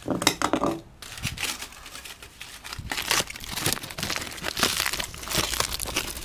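Foil crinkles and rustles in a hand.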